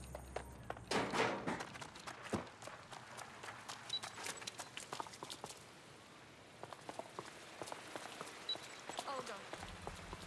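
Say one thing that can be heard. Footsteps run quickly over wet pavement.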